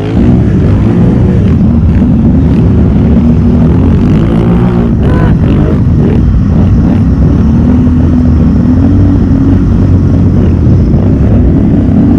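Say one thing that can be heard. An ATV engine revs loudly and strains close by.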